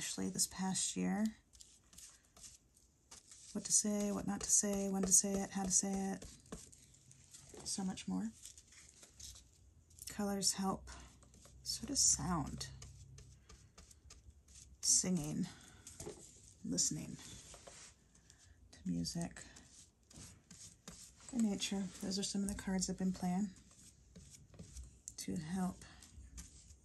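A paintbrush swishes softly across a wet surface.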